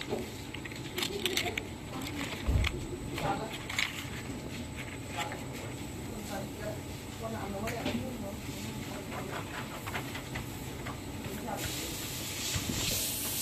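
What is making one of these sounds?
A plastic film rustles and crinkles as fingers handle it.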